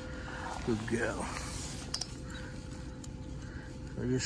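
Dry straw rustles as a hand rubs a dog.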